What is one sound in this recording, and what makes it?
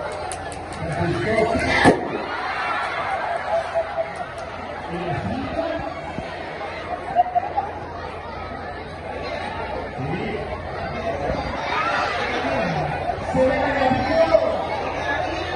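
A crowd laughs and shouts.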